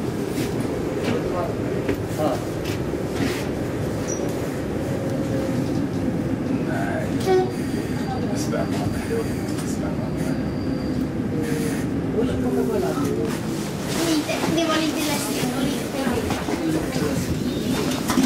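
A tram rumbles and rattles steadily along its tracks.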